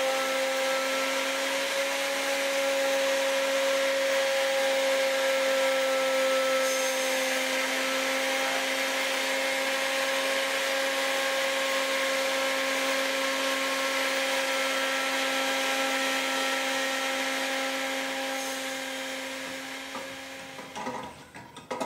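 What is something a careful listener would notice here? A router motor whines steadily.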